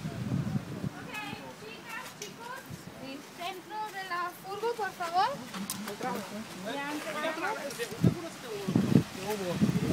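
A woman talks nearby outdoors.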